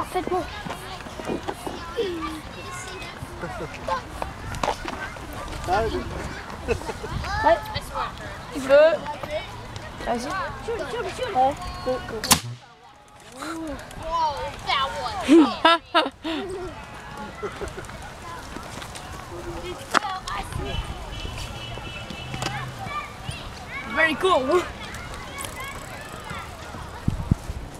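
Young children talk and shout excitedly nearby.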